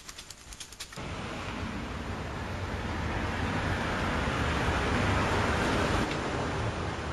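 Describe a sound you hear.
A car engine hums as a car drives slowly past.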